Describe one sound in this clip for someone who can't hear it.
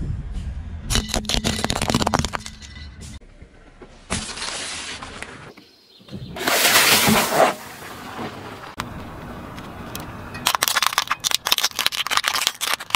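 A car tyre rolls over plastic objects, crushing them with loud crackling and snapping.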